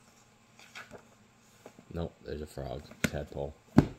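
Book pages riffle quickly.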